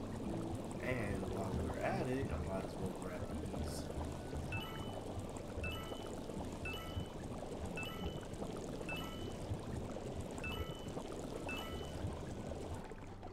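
A game character splashes and swims through thick liquid.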